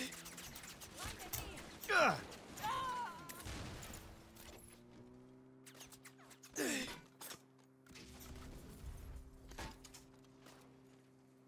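Gunfire cracks in rapid bursts.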